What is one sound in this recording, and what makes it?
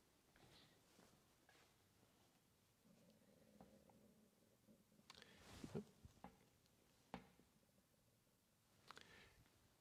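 Soft rustling and patting as felt pieces are pressed onto a board.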